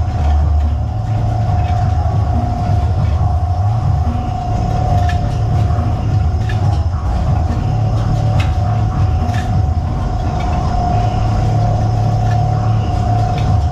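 Metal hooks clink and rattle as they are handled.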